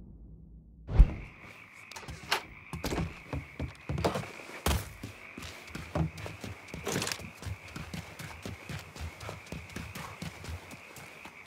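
Footsteps run quickly.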